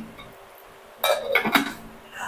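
A glass lid clinks on a glass pot.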